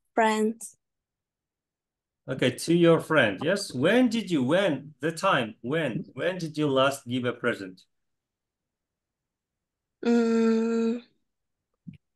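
A young man speaks with animation through a computer microphone, as in an online call.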